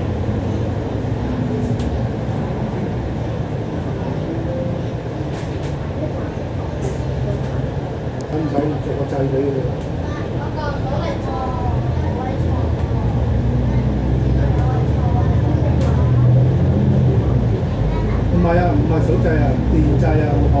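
A diesel double-decker bus engine drones, heard from on board, as the bus moves through traffic.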